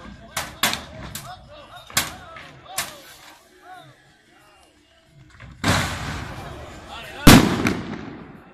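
Loud bangs go off in the distance.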